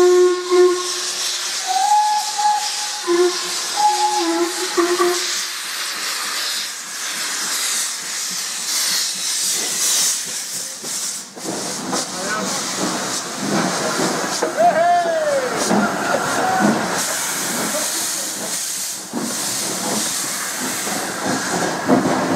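Steam hisses and roars loudly from a locomotive.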